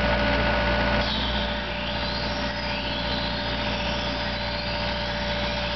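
Hydraulics whine as a tree spade's blades move.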